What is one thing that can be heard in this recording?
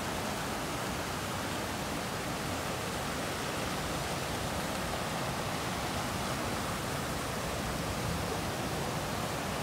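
A river rushes and roars steadily over rocky rapids.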